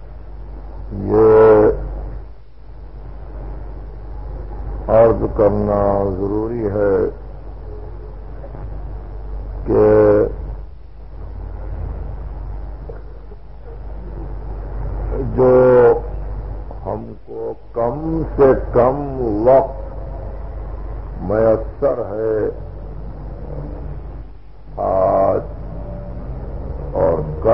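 A middle-aged man chants in long, drawn-out melodic phrases, heard through an old recording.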